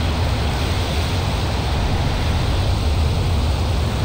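Water splashes steadily from fountains.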